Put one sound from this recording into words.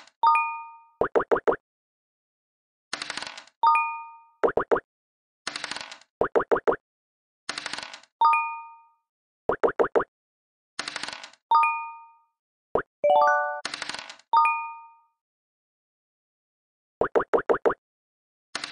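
A game piece hops across the board with quick bright taps.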